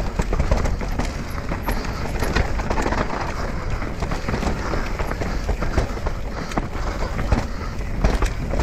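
A bike's frame and chain rattle over bumps.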